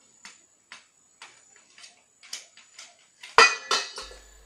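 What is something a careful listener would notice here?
A machete chops into wood with sharp, regular knocks.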